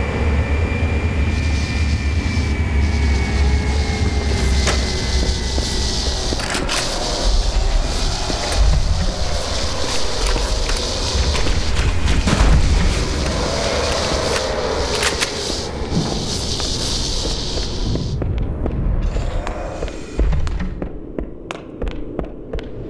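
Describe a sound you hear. A low rumble and whooshing hum play throughout.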